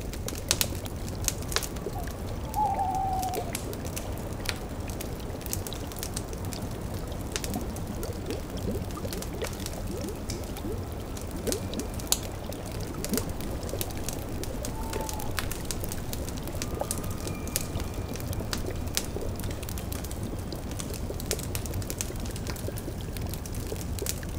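A cauldron bubbles softly.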